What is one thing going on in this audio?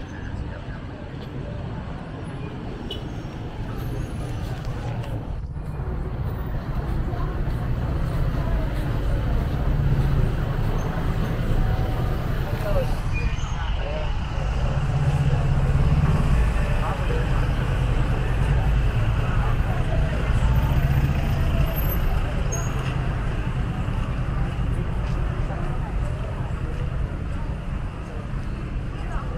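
A busy street outdoors hums with a steady rumble of traffic.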